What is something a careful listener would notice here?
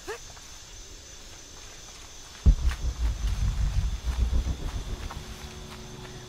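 Footsteps crunch on a forest path.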